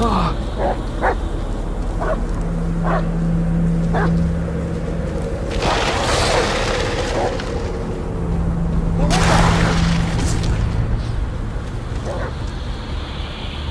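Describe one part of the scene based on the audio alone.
Footsteps rustle through dry undergrowth.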